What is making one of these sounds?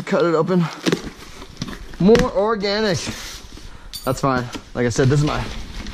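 Metal cans clink as they are set into a box.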